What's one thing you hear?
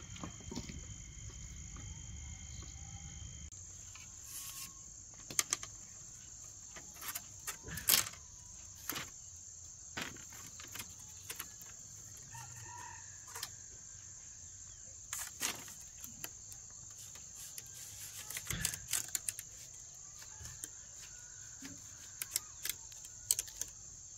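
Bamboo sticks knock and clack together as they are laid on the ground.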